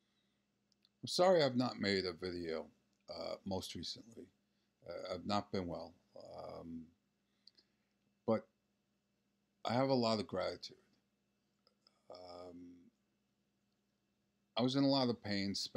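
A middle-aged man talks calmly, close to the microphone, with pauses.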